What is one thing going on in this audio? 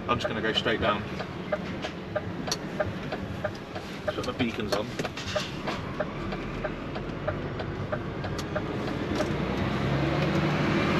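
A truck engine rumbles steadily from inside the cab, growing a little louder near the end.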